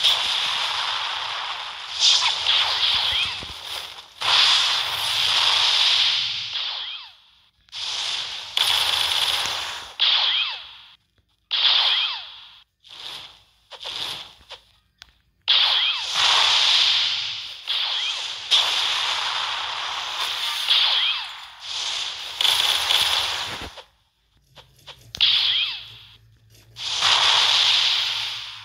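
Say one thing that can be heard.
Fiery blasts whoosh and roar in repeated bursts.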